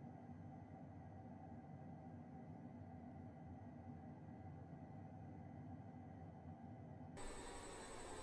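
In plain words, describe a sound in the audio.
A jet engine drones low and muffled, as heard from inside a cabin.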